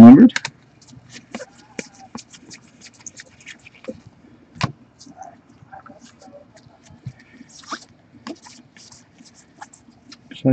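Trading cards rustle and flick softly as they are shuffled by hand.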